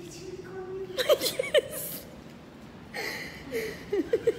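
A young woman laughs loudly, close by.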